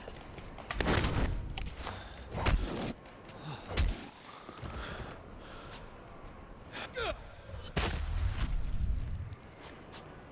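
Heavy melee blows thud and squelch into flesh.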